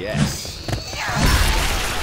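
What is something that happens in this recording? A zombie snarls up close.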